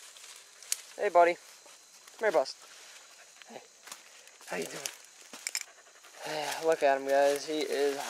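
A dog bays and howls in long, pitched cries nearby.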